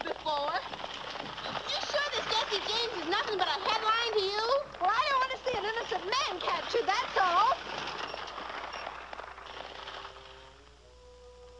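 Two young women sing together brightly.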